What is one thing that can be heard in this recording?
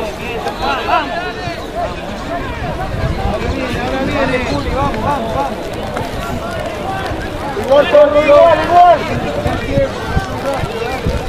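Young men shout and call out to each other outdoors across an open field.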